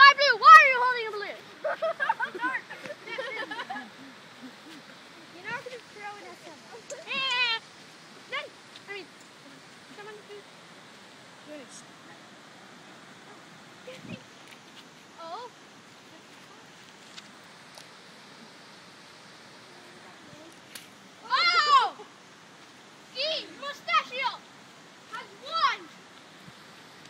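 Young children talk and shout excitedly close by, outdoors.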